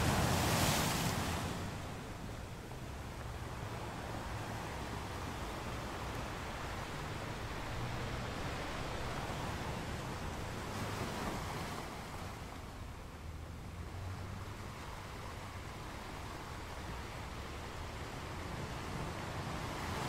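Foamy water washes and hisses over the rocky shore.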